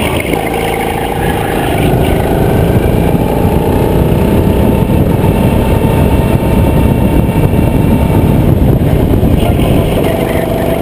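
A go-kart engine buzzes loudly and steadily up close.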